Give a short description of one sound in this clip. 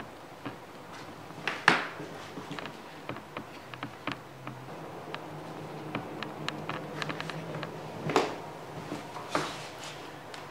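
Clothing rustles and bumps against a nearby microphone.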